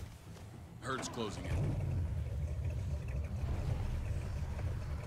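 A car engine starts and rumbles steadily.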